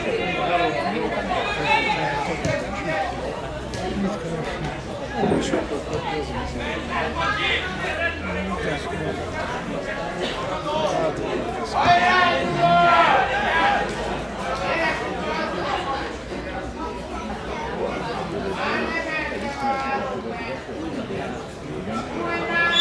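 Men shout and call out to each other outdoors.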